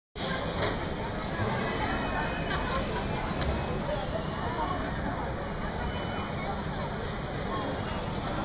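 Riders on a swinging amusement ride scream in a crowd.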